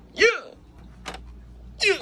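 A toy keyboard plays notes.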